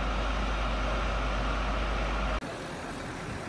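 A fire engine idles with a steady low rumble.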